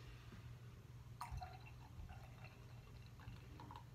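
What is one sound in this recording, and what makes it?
Beer pours from a bottle into a glass.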